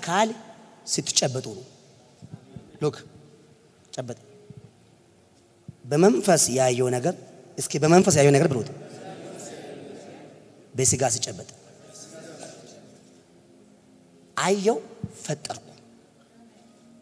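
A man preaches with animation into a microphone, his voice echoing through a hall.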